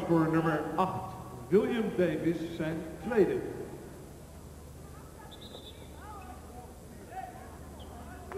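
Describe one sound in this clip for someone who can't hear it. A crowd murmurs in a large echoing arena.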